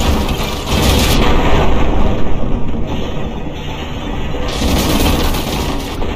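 Water splashes and churns as debris plunges in.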